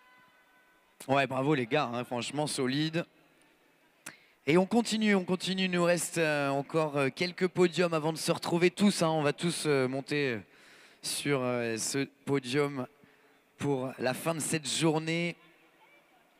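A man speaks with animation over a loudspeaker in a large echoing hall.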